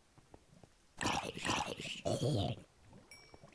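A zombie groans and grunts close by.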